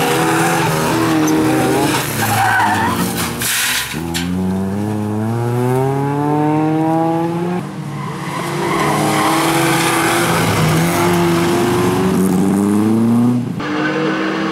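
A race car engine roars and revs hard.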